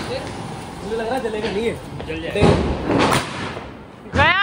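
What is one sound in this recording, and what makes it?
A firework fountain hisses and crackles loudly.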